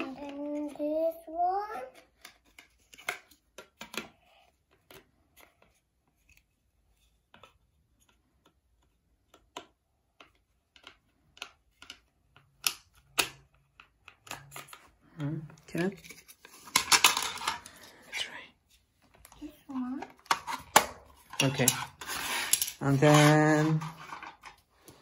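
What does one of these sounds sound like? Plastic toy parts click and clatter.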